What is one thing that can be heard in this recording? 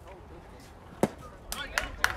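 A bat cracks against a baseball outdoors.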